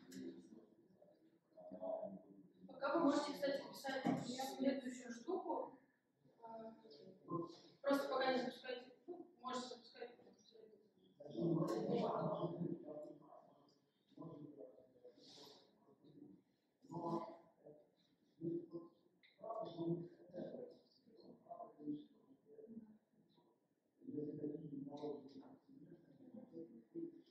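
A young woman speaks calmly to a group.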